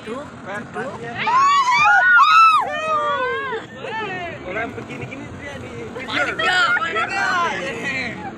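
A young child talks loudly nearby.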